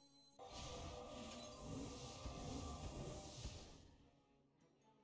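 A magic spell bursts with a loud rushing whoosh.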